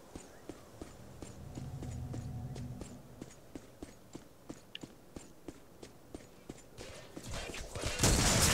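Armored footsteps thud rhythmically on the ground.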